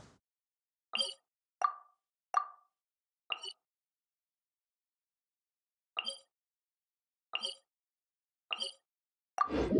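Soft menu clicks chime.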